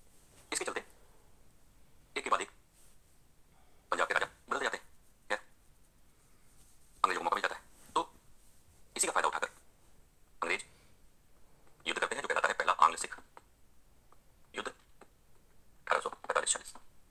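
A man lectures calmly through a small loudspeaker, in short bursts with pauses.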